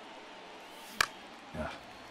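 A bat cracks against a ball.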